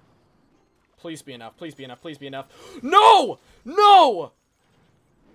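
A young man shouts excitedly into a close microphone.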